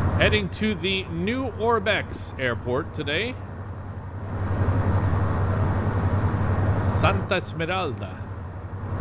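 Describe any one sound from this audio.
A man talks casually through a microphone.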